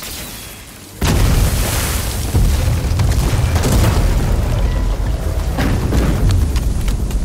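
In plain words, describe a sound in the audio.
A deep rumble of breaking ice and stone rolls on.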